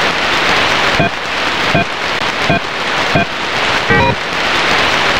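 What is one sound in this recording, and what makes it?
Keypad buttons beep one after another.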